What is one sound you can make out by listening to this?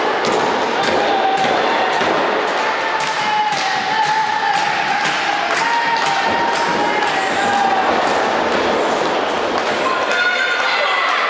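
A crowd claps in a quick, steady rhythm.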